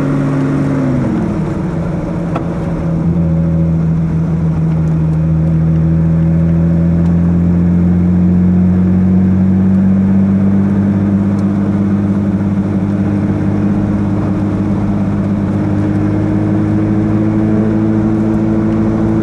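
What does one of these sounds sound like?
A car engine hums steadily, dropping in pitch early on and then slowly rising as the car drives.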